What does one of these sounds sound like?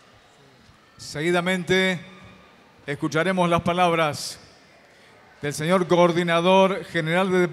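A man speaks through a loudspeaker, announcing in a large echoing hall.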